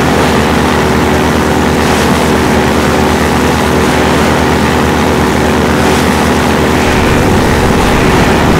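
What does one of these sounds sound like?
An airboat engine roars steadily.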